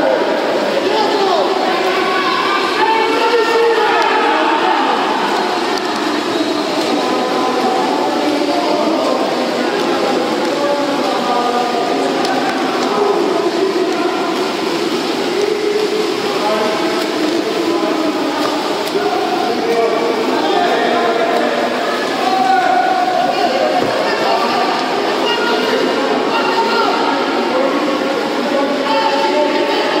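Water splashes as swimmers thrash in a pool.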